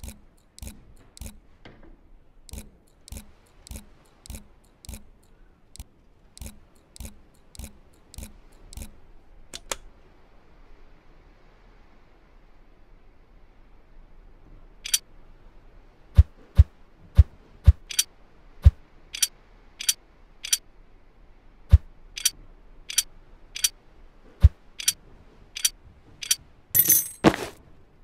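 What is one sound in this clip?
A pocket watch ticks steadily up close.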